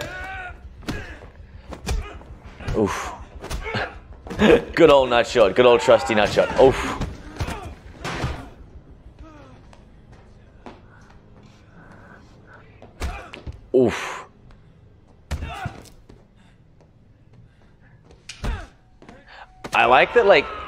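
Bodies thud and slam during a scuffle.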